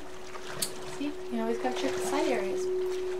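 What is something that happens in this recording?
A young woman talks casually into a microphone.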